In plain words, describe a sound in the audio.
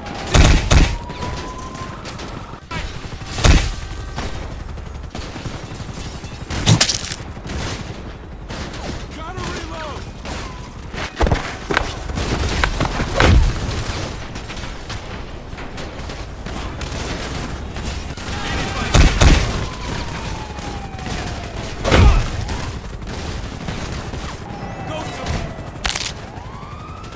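Heavy blows thud and smack as a man is beaten.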